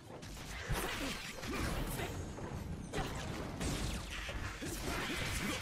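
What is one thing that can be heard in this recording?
Blades slash and clash with sharp electric whooshes.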